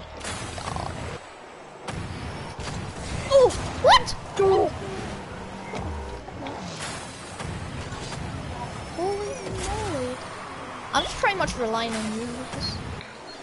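A game car's engine hums and its rocket boost roars in bursts.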